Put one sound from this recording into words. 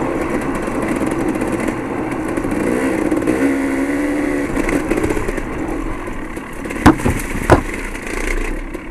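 A motorbike engine hums and revs steadily.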